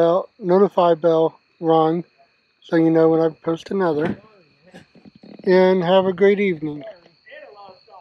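A middle-aged man talks calmly, close to the microphone.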